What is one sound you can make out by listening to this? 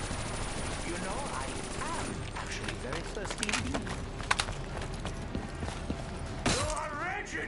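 A zombie snarls and groans.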